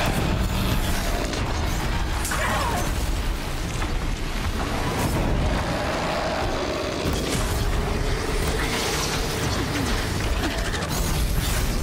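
A large machine creature roars and stomps.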